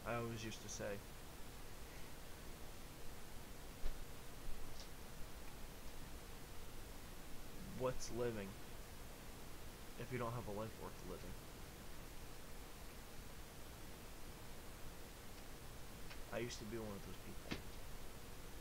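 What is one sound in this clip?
A young man speaks calmly and briefly, close to a microphone, with long pauses.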